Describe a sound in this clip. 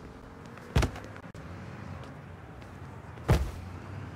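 A door swings open with a knock.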